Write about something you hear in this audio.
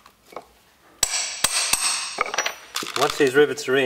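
A mallet strikes sharply several times.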